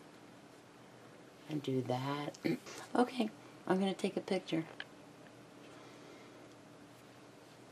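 Fabric rustles softly as it is folded and smoothed by hand.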